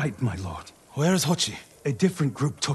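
A man asks a short question in a low voice.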